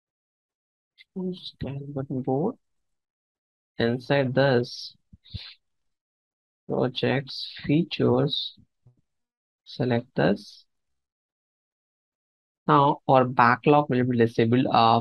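A man talks calmly into a microphone, in short phrases with pauses.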